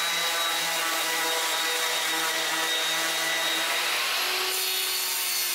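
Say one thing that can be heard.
An electric sander whirs loudly against wood.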